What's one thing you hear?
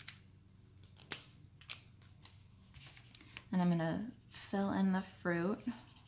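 A marker pen scratches softly across paper.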